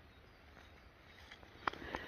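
Twigs and leaves rustle as a hand pushes through undergrowth.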